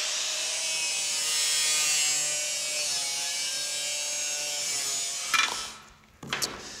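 An angle grinder whines loudly as it cuts through sheet metal.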